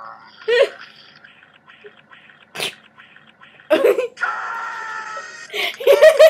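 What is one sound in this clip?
A young woman talks and laughs excitedly close to a microphone.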